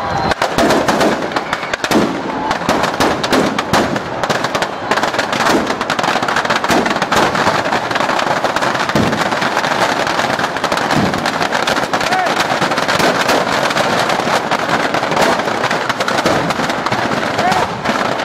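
Firecrackers pop and crackle in rapid bursts inside a burning effigy.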